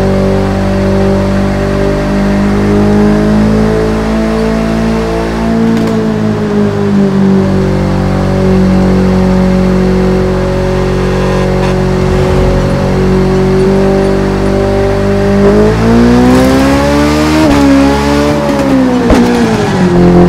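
A motorcycle engine hums steadily, then revs up and down.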